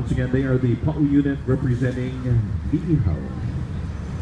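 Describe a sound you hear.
A man speaks loudly close by.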